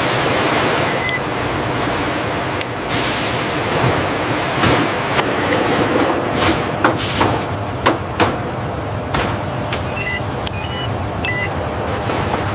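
A handheld barcode scanner beeps.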